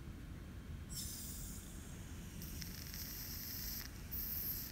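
Butane gas hisses as a lighter is refilled from a can.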